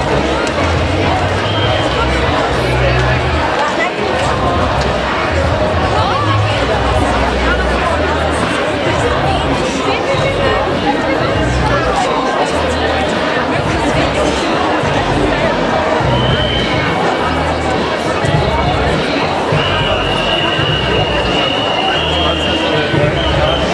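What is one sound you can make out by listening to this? A large crowd chatters and murmurs outdoors.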